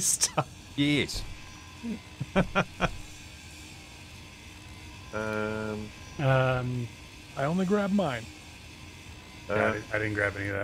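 A power tool grinds metal with a crackling hiss.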